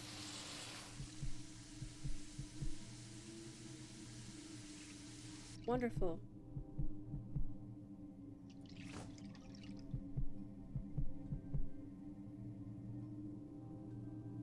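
A young woman talks quietly and casually into a microphone.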